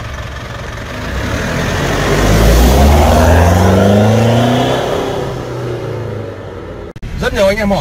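A truck engine revs loudly, rising and falling in pitch.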